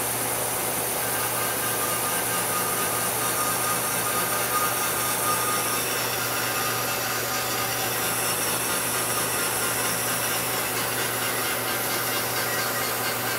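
A spinning cutter grinds and whines into metal.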